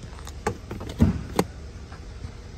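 A plastic lever clicks and knocks as a hand pulls it.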